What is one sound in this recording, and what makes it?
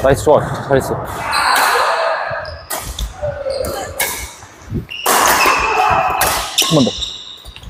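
Young people call out and shout in a large echoing hall.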